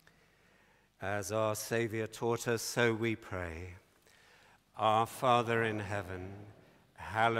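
An elderly man intones slowly through a microphone in a large echoing hall.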